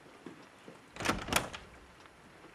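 A door opens with a click and a thud.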